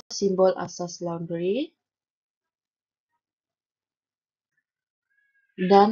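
A young woman speaks calmly into a close microphone, pausing between phrases.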